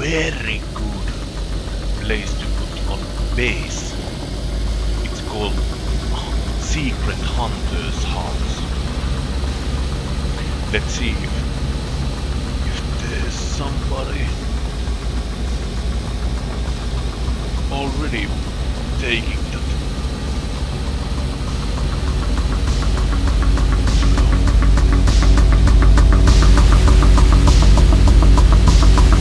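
Tyres rumble over a bumpy dirt track.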